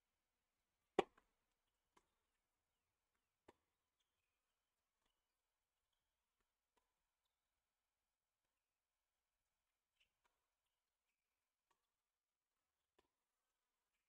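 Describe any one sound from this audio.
A racket strikes a tennis ball with a crisp pop.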